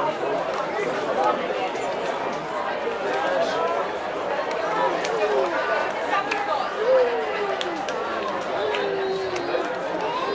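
Hands slap together as players shake hands.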